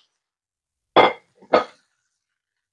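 A spatula knocks against a frying pan.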